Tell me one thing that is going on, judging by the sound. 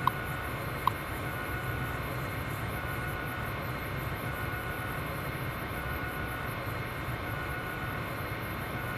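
An old computer terminal hums steadily.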